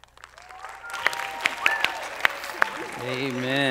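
Young performers clap their hands.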